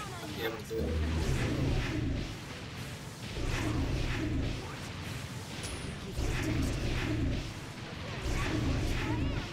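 A man talks into a nearby microphone.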